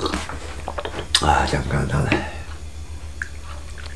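Tea pours from a teapot into a cup.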